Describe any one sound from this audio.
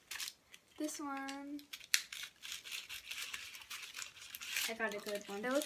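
A plastic candy tray rustles and crinkles.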